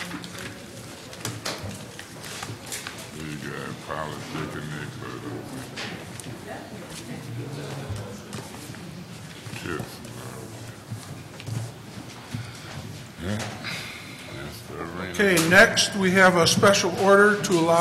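Footsteps shuffle across a hard floor as a group walks past.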